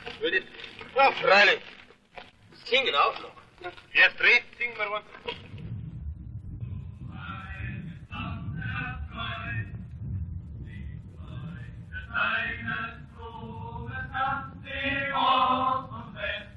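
A chorus of men sings a marching song.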